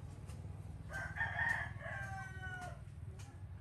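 A baby monkey squeaks briefly.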